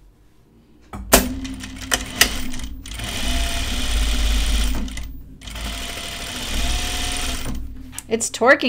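A sewing machine whirs steadily as it stitches.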